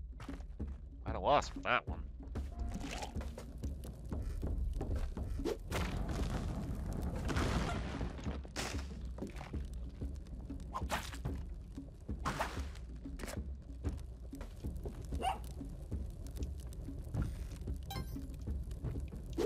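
Short electronic game sound effects blip and thud.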